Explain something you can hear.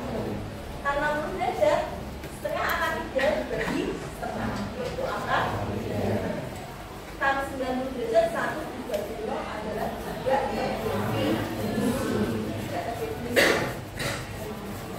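A woman speaks clearly and calmly to a group.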